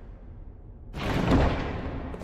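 A heavy wooden chest lid creaks open.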